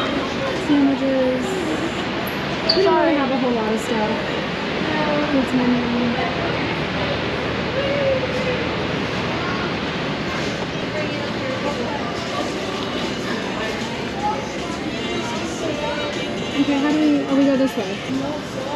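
A woman talks casually close by.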